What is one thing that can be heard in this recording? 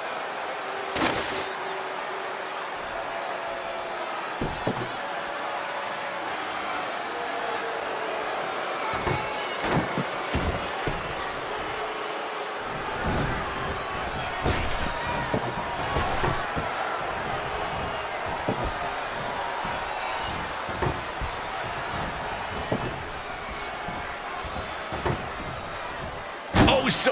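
Heavy bodies and objects slam hard onto a wrestling ring.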